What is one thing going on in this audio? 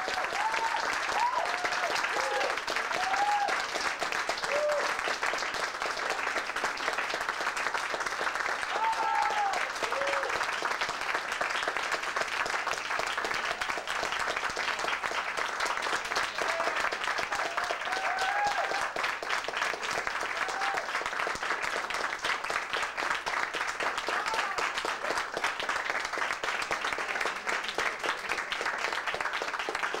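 An audience claps loudly and steadily in a room.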